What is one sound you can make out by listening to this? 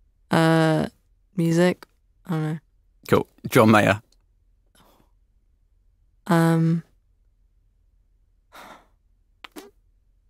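A young woman speaks in short bursts close to a microphone.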